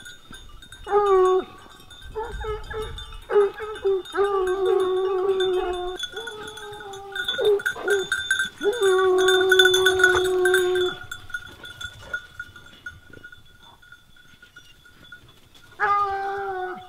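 Hounds bay and howl loudly outdoors.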